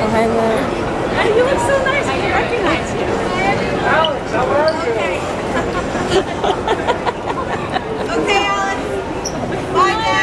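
Many people chatter in a large echoing hall.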